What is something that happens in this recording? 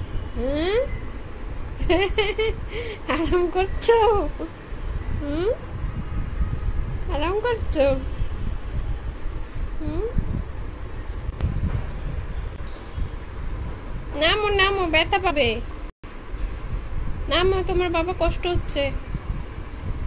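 A young girl talks playfully close by.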